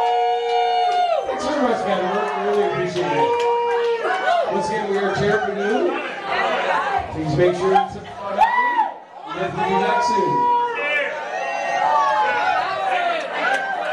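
A live band plays electric guitars loudly.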